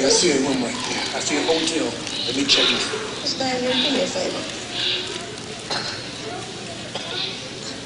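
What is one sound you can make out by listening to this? A woman speaks with expression on a stage, heard from a distance in a large hall.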